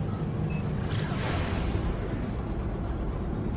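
A whooshing rush swells as a ship jumps to high speed.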